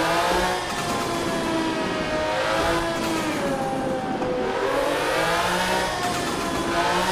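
A car engine drones steadily, its pitch rising and dipping as it shifts gears.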